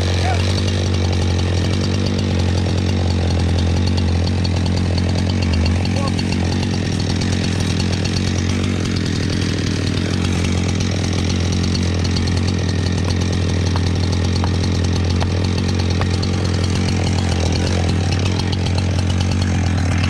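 A chainsaw engine runs loudly and steadily close by.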